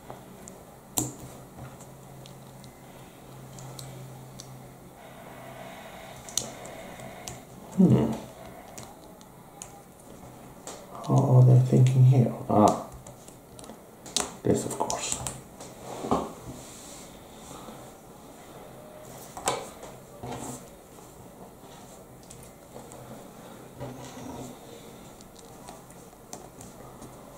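Small plastic pieces click and snap together under the fingers.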